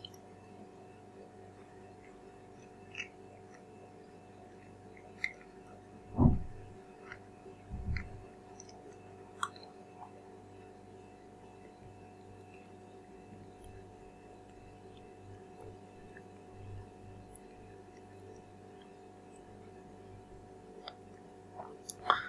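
A banana peel rustles softly in a young man's hands.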